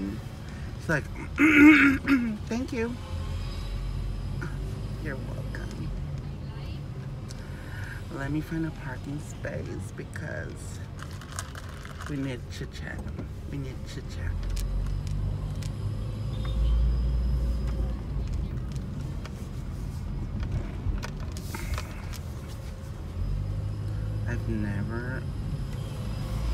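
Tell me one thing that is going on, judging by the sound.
A young man talks casually and close by in a car.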